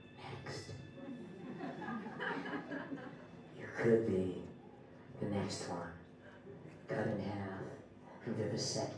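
A woman speaks expressively into a microphone, heard close through a loudspeaker.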